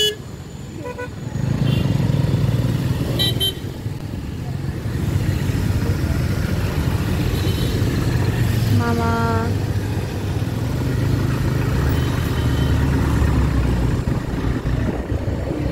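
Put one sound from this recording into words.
Other motorbikes and cars pass close by.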